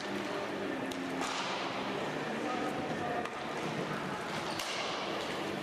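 A hockey stick smacks a ball.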